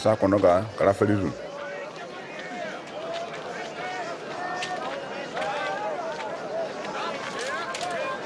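A large crowd murmurs and chatters all around.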